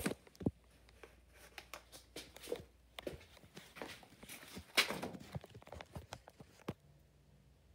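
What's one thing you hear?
Objects knock and shuffle about close by.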